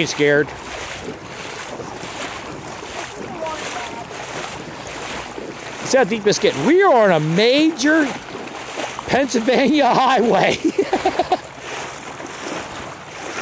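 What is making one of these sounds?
Feet splash and wade through shallow water.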